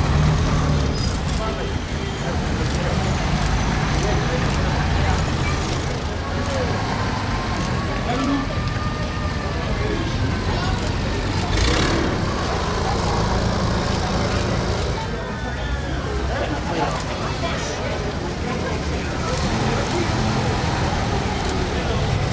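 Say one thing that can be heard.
A crowd murmurs along the street outdoors.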